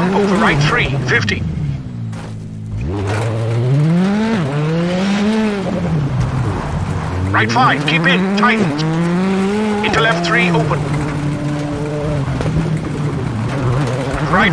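Tyres crunch and hiss on loose gravel.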